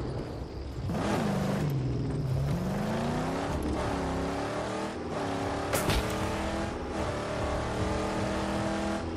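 A muscle car engine revs hard and climbs in pitch as it speeds up.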